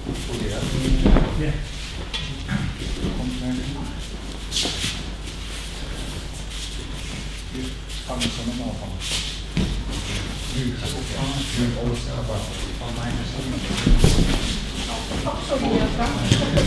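Bodies thump onto a mat in an echoing hall.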